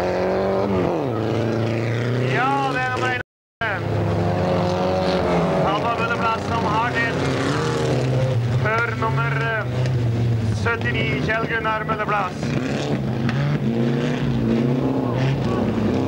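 Several race car engines roar and rev hard.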